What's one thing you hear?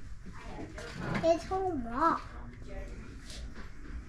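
A wooden rocking chair creaks as a hand rocks it.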